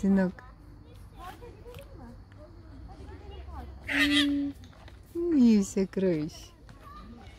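A young child shouts and squeals nearby.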